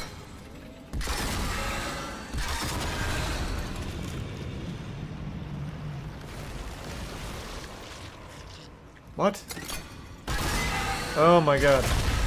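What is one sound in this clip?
A weapon fires with a deep roaring rumble.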